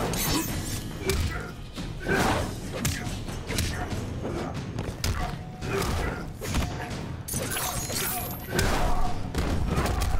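Punches and kicks land with heavy thuds, again and again.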